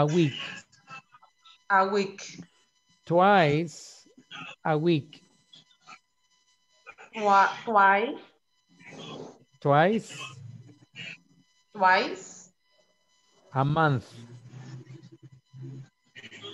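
A man speaks with animation over an online call, his voice rising and falling in pitch.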